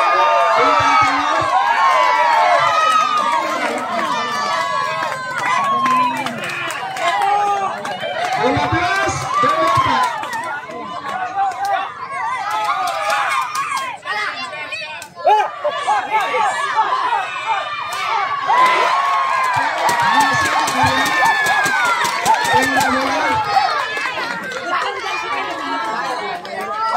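A large crowd of spectators shouts and cheers outdoors.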